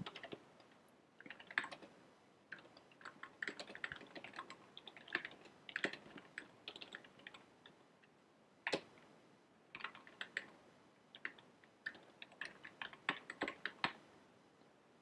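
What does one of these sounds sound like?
Keys tap quickly on a computer keyboard.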